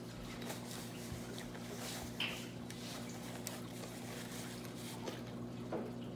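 Paper napkins crinkle close by.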